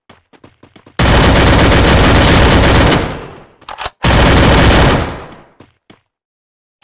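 A triumphant game fanfare plays loudly.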